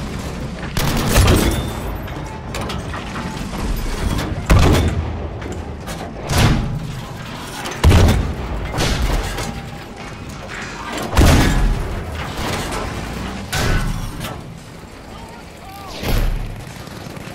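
Heavy gunshots and explosions boom and echo.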